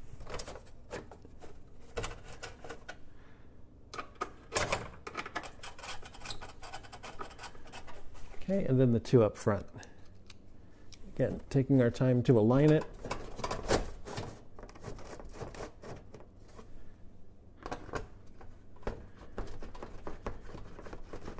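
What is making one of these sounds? A screwdriver clicks and scrapes against metal fasteners.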